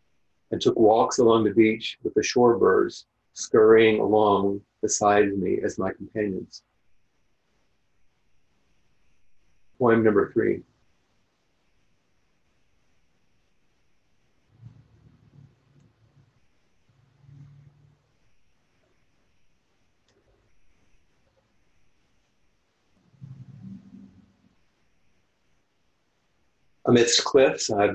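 An older man speaks calmly and slowly over an online call, with long pauses.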